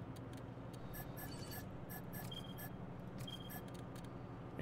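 Soft menu clicks and chimes sound as items are selected.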